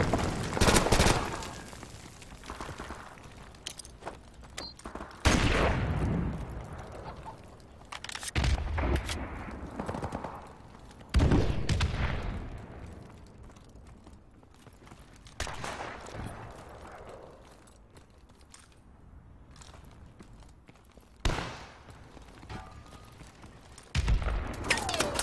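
Gunfire bursts loudly in short, sharp volleys with echoing booms.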